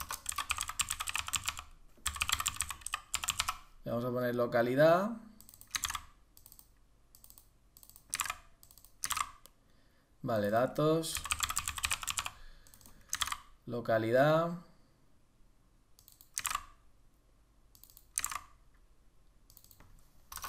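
Keys on a keyboard click in quick bursts.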